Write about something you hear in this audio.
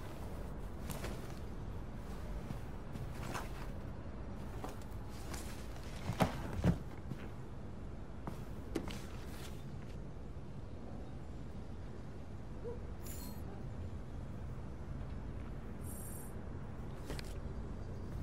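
Glossy magazines rustle and slap as they are handled.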